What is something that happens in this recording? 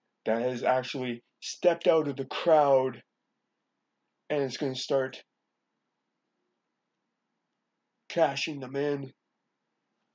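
A man speaks calmly, close by, in short bursts with pauses.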